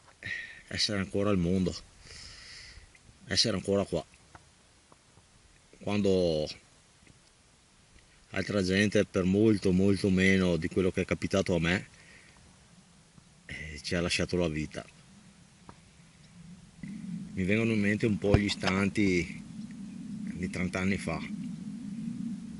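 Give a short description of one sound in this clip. A man talks close up, calmly, in short bursts with pauses.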